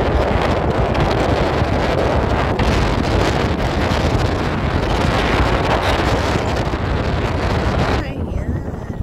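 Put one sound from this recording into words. Wind rushes loudly past a moving car.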